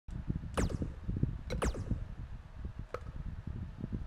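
Short whooshing menu sounds play as selections change.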